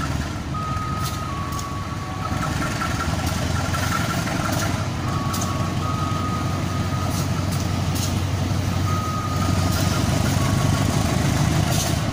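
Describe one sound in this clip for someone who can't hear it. A diesel locomotive engine rumbles steadily as a train approaches slowly.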